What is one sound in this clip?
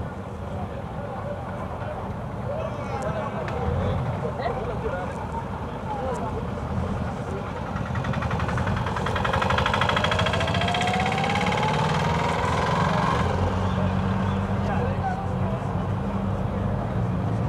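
A vehicle engine rumbles steadily from inside.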